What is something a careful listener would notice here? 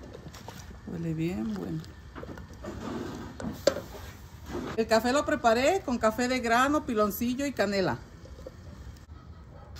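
Liquid pours from a ladle into a pot.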